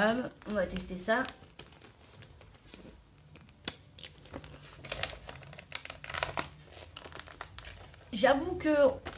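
Paper tears and rustles.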